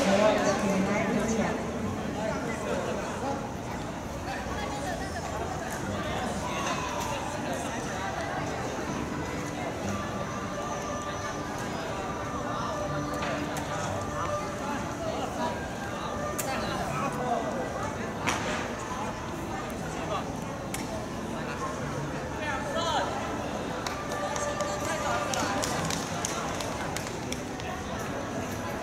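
A crowd of young people chatter and call out.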